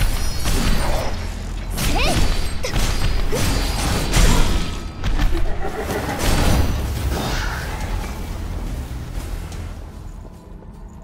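Blades slash and clash in a fierce fight.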